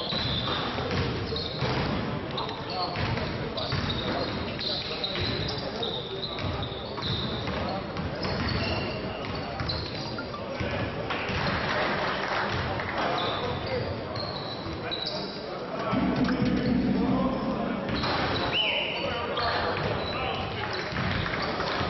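A basketball bounces on the court.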